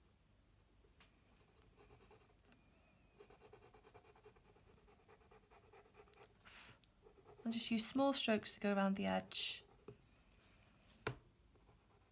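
A coloured pencil scratches softly on paper in quick strokes.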